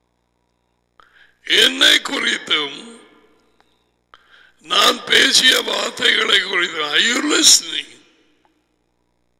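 A middle-aged man speaks with animation through a headset microphone.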